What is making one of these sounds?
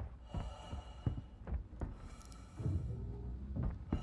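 A heavy sliding door hisses open.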